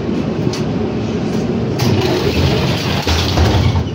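Tram doors fold shut with a clatter.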